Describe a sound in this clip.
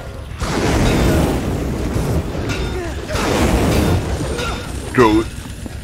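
Heavy blows thud against soft bags.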